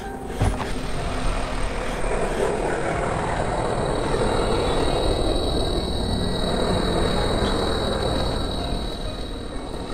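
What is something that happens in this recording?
A hovering drone hums steadily.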